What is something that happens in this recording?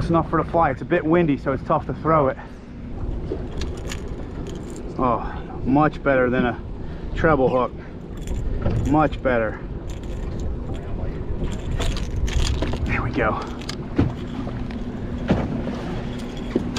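Water laps against the side of a boat.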